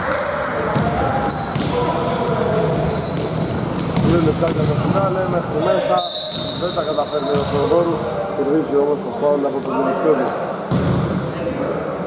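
Men call out to each other across the hall.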